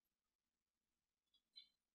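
Mahjong tiles click against a table.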